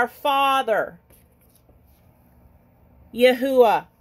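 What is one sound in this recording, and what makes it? A paper card rustles softly as a hand swaps it.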